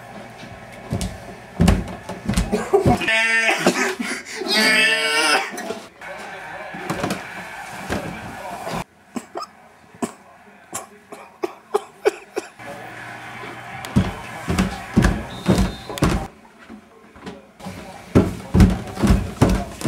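A man's footsteps thud down wooden stairs.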